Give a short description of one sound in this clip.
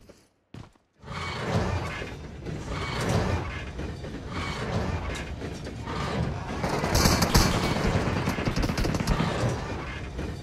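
A cart rumbles and clatters along rails in an echoing tunnel.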